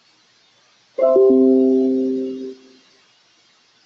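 A computer notification chime rings out once and fades.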